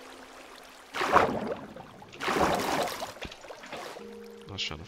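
Water splashes in short bursts.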